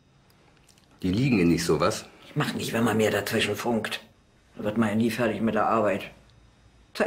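An elderly woman speaks quietly and calmly.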